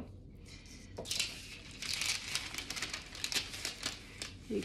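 Flour rustles and pours from a paper bag into a metal bowl.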